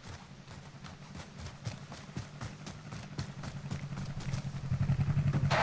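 Footsteps crunch quickly over dry grass.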